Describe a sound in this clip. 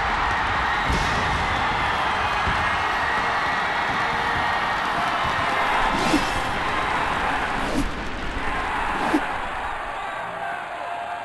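A large crowd cheers loudly in a stadium.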